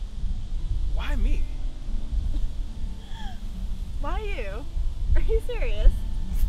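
A young man speaks softly up close, outdoors.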